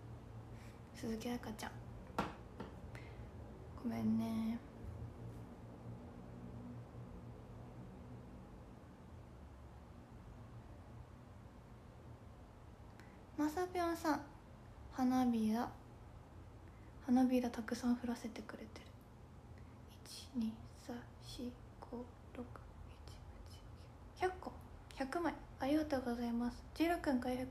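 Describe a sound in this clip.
A young woman speaks softly and close to a microphone, in short bursts with pauses.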